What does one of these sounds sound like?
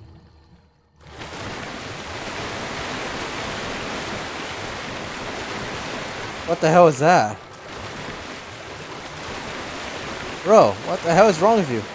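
Water swishes and splashes steadily as someone swims.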